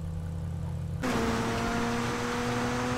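An off-road buggy's engine drones steadily as it drives.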